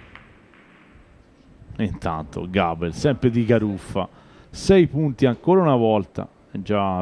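Billiard balls click against each other on a table.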